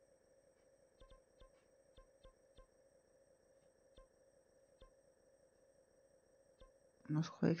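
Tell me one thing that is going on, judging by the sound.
Soft game menu ticks sound now and then.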